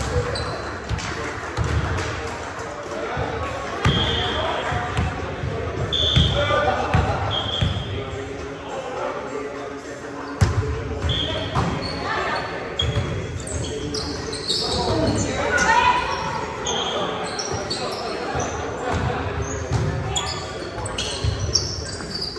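Shoes squeak sharply on a gym floor in a large echoing hall.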